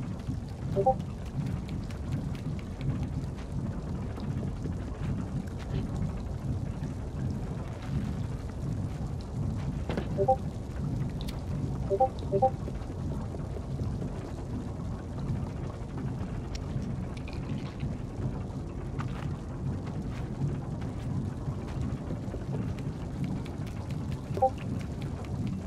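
Small footsteps patter on wooden boards.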